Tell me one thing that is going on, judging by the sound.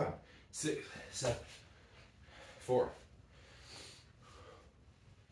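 Hands and feet thump on a rubber floor.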